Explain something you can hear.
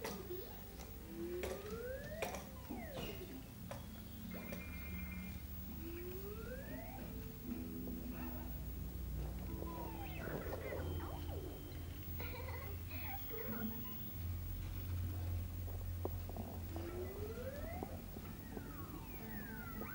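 Plastic toy trucks clatter on a wooden surface.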